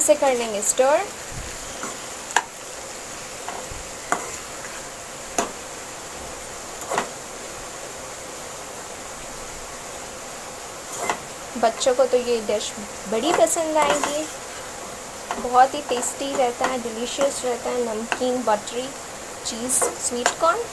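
Corn kernels sizzle gently in a hot pan.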